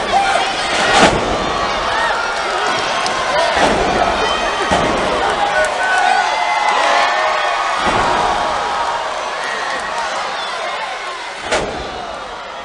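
Bodies slam heavily onto a wrestling ring mat with loud thuds.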